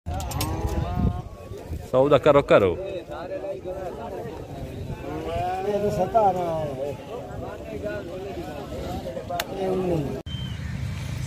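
Several men talk loudly and with animation close by.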